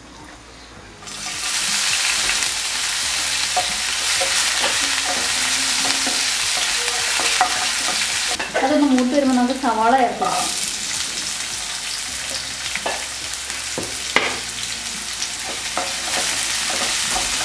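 Hot oil sizzles loudly in a pan.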